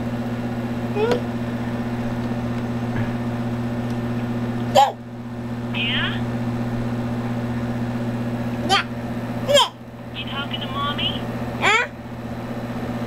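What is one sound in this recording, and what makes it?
A toddler squeals and babbles nearby.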